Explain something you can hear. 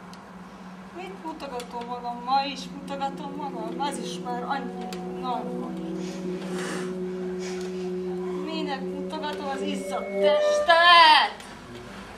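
A young woman sings with feeling.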